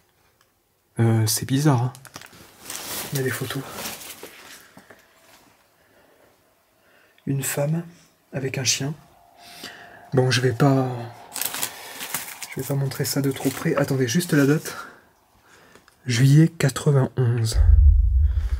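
A young man talks quietly and tensely, close by.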